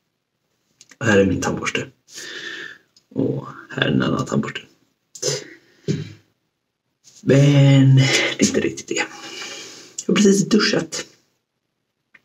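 A man talks with animation, close up.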